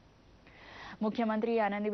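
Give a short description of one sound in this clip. A young woman reads out news calmly and clearly.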